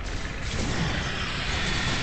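An energy beam zaps and crackles.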